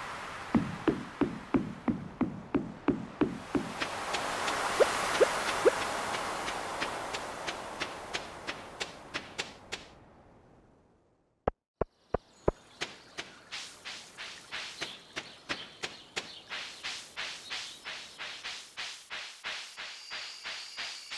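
Footsteps patter quickly and steadily on wood, sand and dirt.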